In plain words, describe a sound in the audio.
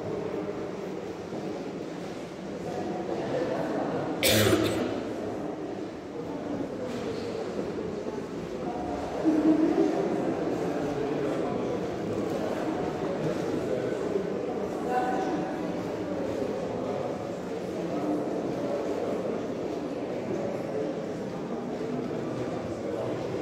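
An audience murmurs and chatters quietly in a large echoing hall.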